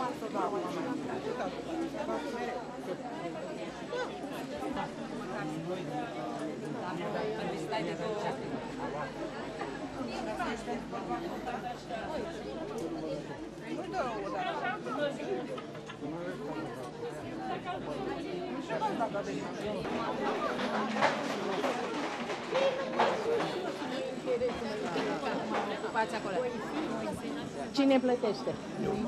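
A large crowd of men and women chatters loudly all around, close by.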